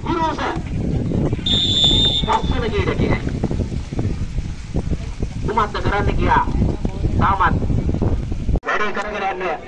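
Men cheer and shout excitedly outdoors.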